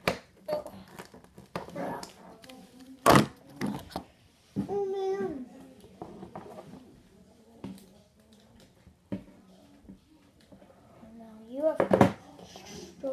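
Plastic toy figures knock and clatter against a toy wrestling ring.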